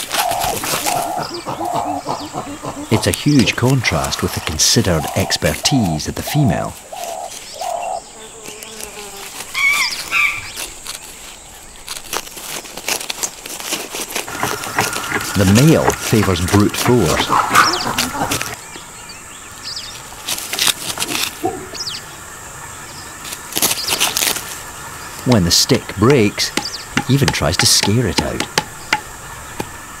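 Leaves and branches rustle as a chimpanzee moves about in a tree.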